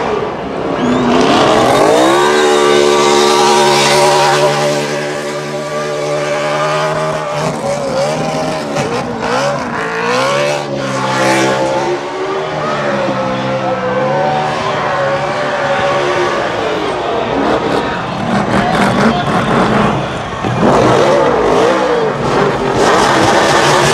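A race car engine roars and revs hard close by.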